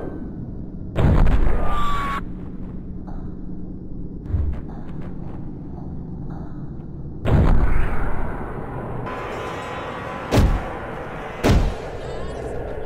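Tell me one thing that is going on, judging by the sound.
A crowbar strikes with heavy whacks.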